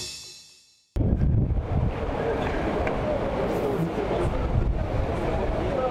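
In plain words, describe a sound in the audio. A crowd of men and women talks and murmurs outdoors nearby.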